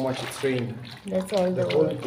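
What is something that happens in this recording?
Footsteps splash on a wet pavement.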